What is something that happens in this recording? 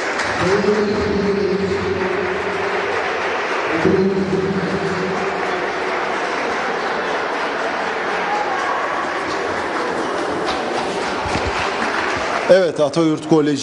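A crowd of children cheers and shouts in a large echoing hall.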